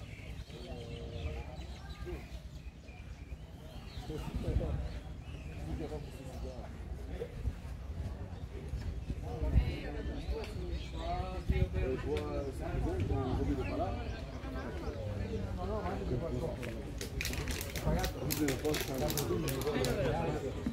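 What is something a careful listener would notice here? Men and women chat at a distance outdoors.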